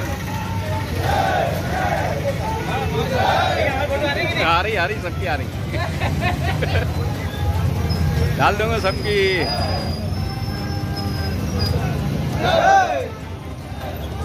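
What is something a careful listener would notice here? A crowd of men talks and chants outdoors.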